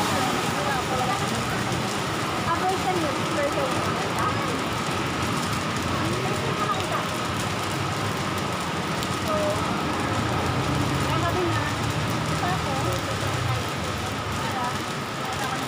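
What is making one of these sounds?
Several women chat close by, with lively voices overlapping.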